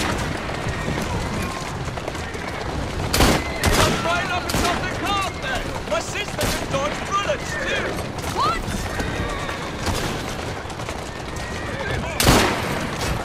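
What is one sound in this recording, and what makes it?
A horse-drawn carriage rattles along a street.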